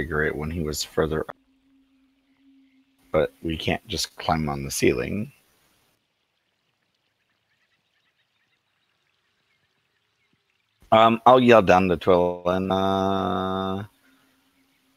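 Several men talk by turns over an online call, with animation.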